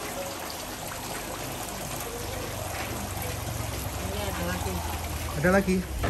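Water splashes as feet wade through it.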